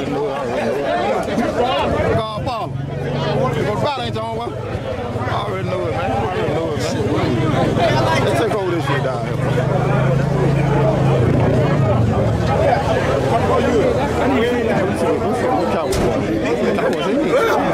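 A large crowd of men and women talks and chatters loudly outdoors all around.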